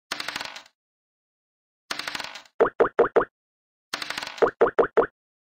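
A die rattles as it rolls.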